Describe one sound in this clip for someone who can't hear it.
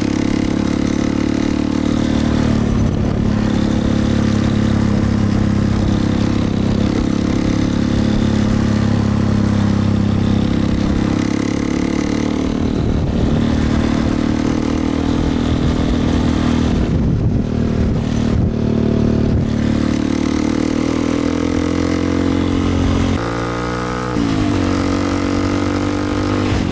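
Wind rushes past the rider.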